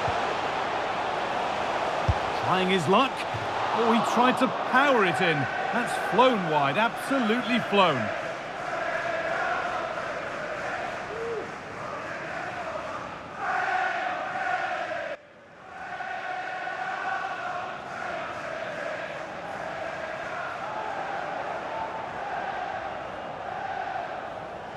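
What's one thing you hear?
A large crowd roars and chants steadily in a big open stadium.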